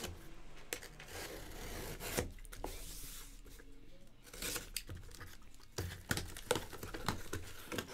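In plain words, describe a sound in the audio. A blade scrapes and slices through a cardboard box.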